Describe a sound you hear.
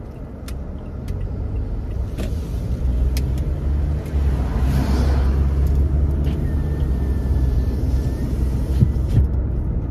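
Tyres rumble low on the road.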